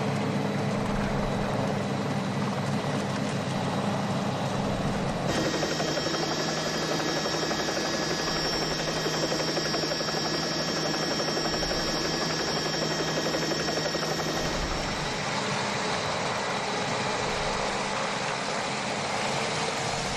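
Bicycles whir along the road in a large group.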